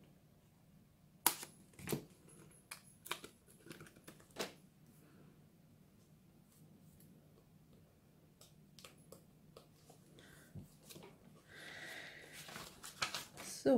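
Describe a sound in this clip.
A plastic scoring board clicks and knocks as it is closed and opened.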